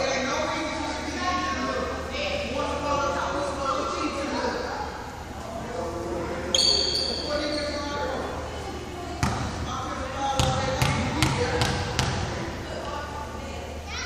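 Girls talk and call out in a large echoing gym.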